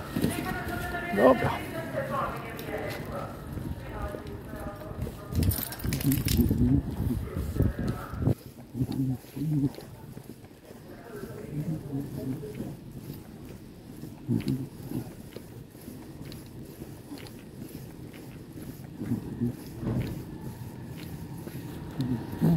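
A dog's claws tap on a hard floor as it walks.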